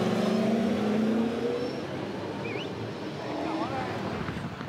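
A race car engine idles and revs close by.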